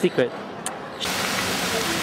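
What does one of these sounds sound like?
A fountain's water splashes and rushes steadily.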